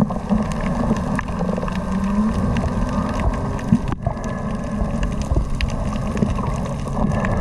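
Seawater rumbles and churns underwater.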